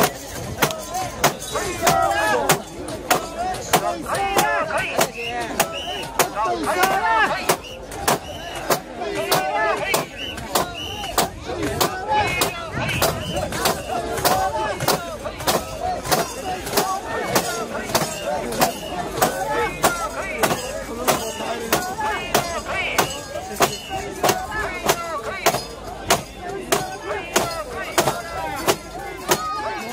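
Metal bells on a carried shrine jingle in a steady, fast beat.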